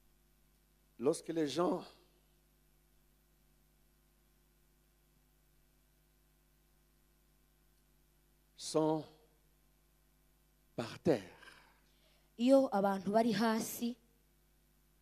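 A man speaks through a microphone in short bursts, with long pauses.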